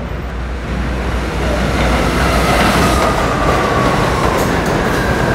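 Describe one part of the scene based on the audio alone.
Train brakes squeal.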